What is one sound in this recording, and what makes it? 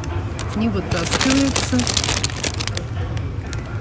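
Plastic wrapping crinkles under a hand.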